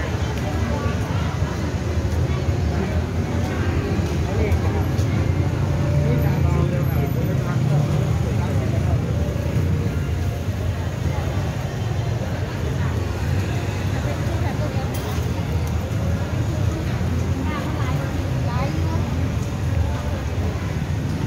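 A crowd murmurs and chatters all around.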